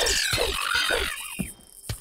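A sword swings with a sharp whoosh.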